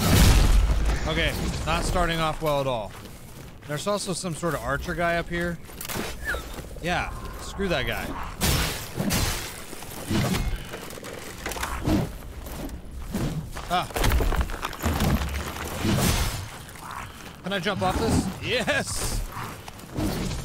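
A man talks with animation into a nearby microphone.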